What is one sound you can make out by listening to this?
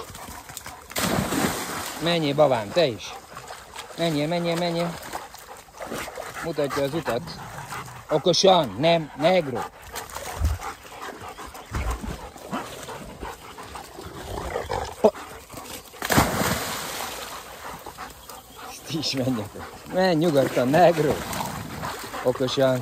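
Dogs splash and paddle through shallow water.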